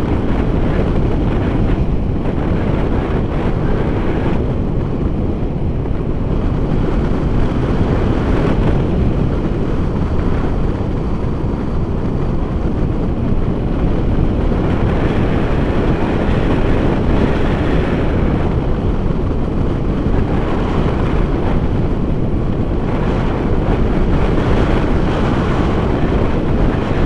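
Strong wind roars and buffets against a microphone throughout.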